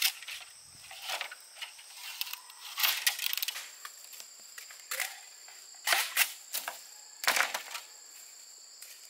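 Bamboo poles clatter and knock against each other on the ground.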